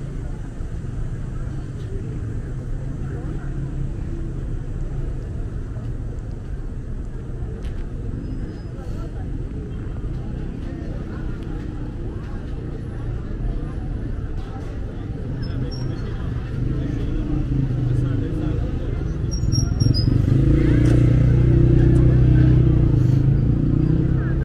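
A busy crowd murmurs and chatters outdoors.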